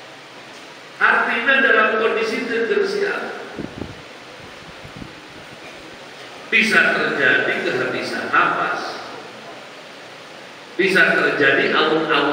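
An elderly man preaches with emphasis through a microphone in a reverberant hall.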